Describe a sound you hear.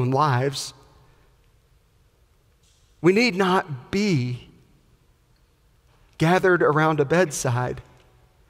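A man speaks with animation into a microphone, with pauses between phrases.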